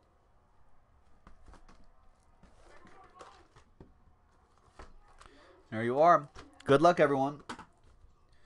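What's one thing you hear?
Cardboard boxes slide and tap as they are handled.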